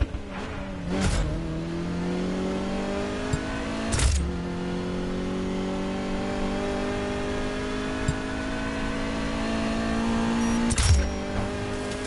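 A car gearbox shifts with a sharp clunk.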